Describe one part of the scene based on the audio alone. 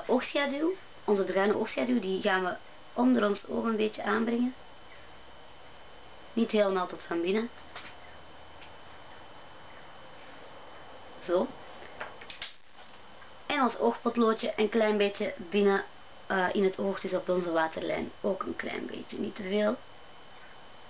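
A young woman talks calmly and close to a microphone, with pauses.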